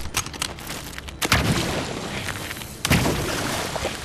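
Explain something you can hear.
A magical whoosh bursts out.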